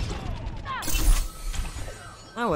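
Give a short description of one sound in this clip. An electric blast crackles and bursts.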